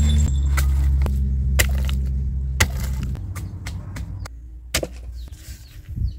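A wooden pestle pounds in a clay mortar.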